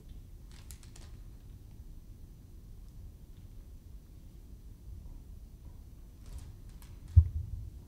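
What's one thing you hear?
Footsteps echo faintly in a large, reverberant hall.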